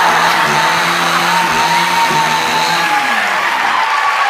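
A chainsaw engine revs loudly.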